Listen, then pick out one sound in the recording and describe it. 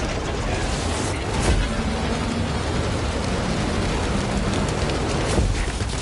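Flames roar from a fire blast.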